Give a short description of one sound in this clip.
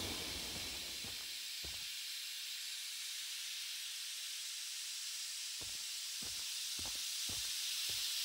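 Footsteps tread softly on a hard floor.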